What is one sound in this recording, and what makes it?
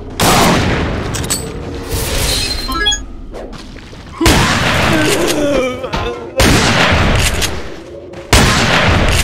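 Loud gunshots fire in quick bursts.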